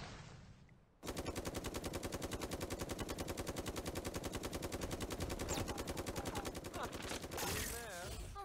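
A gun fires in a fast, steady stream of shots.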